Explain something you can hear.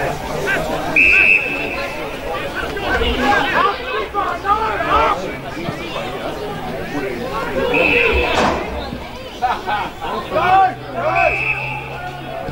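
An umpire's whistle blows in short sharp blasts.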